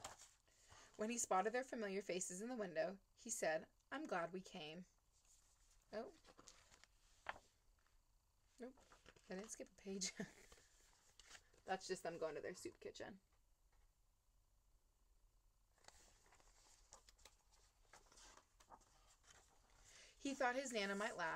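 A young woman reads aloud calmly, close by.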